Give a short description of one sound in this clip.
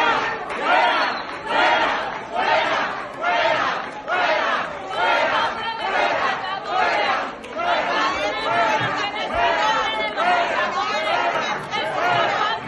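A woman shouts loudly nearby.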